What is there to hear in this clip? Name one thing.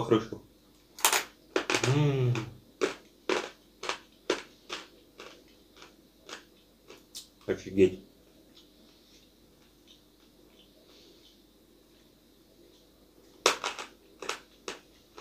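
A young man crunches something hard between his teeth.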